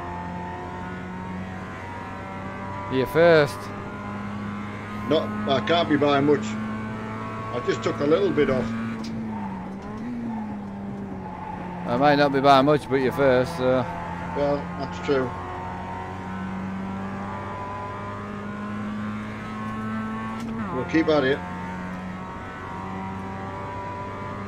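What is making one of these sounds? A race car engine hums steadily.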